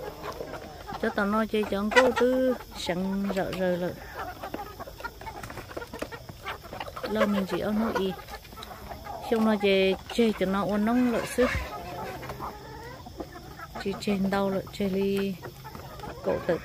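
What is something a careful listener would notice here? Roosters crow loudly.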